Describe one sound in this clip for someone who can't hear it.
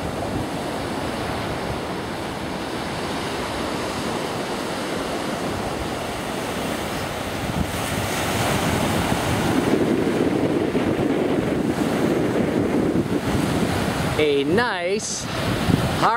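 Waves break and wash onto the shore nearby.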